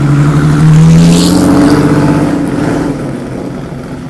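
A sports car engine roars as the car drives past close by.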